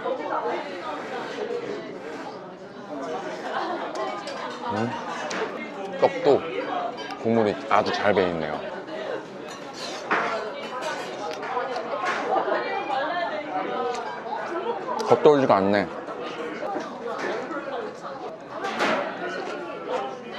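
A young man slurps and chews food noisily.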